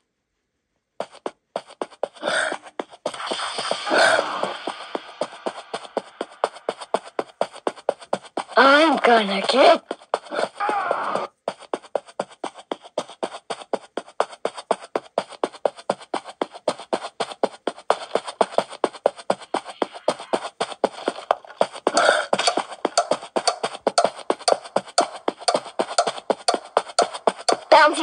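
Quick, even footsteps play from a tablet's small speaker.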